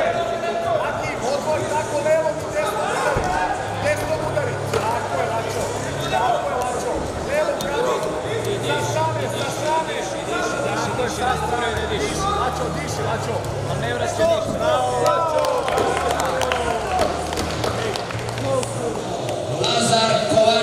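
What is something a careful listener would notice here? A crowd of spectators shouts encouragement in a large echoing hall.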